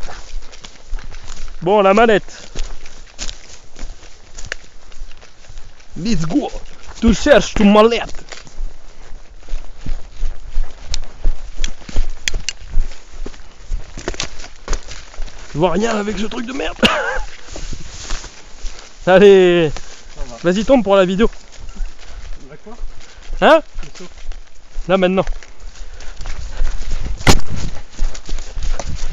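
Footsteps crunch on dry grass and leaves outdoors.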